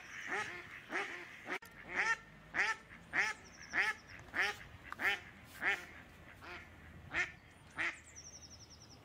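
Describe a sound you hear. A duck quacks loudly and repeatedly, close by.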